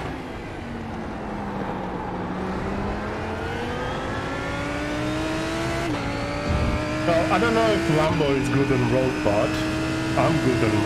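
A race car engine revs steadily higher, dropping briefly as it shifts gear.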